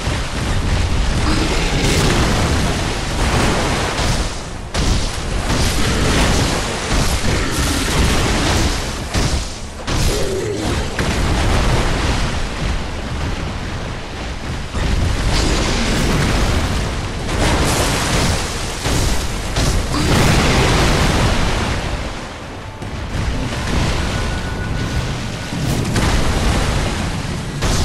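A huge beast roars and thuds heavily.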